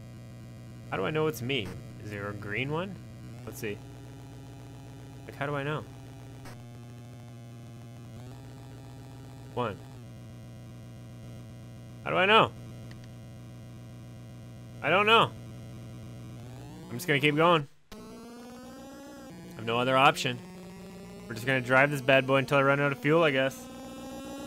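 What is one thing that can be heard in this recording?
A retro video game car engine drones with a steady, buzzy hum.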